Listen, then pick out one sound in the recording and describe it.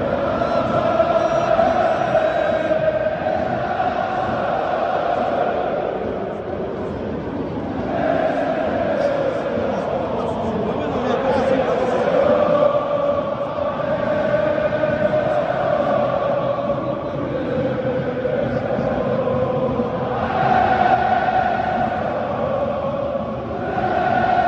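A huge stadium crowd sings a chant loudly in unison.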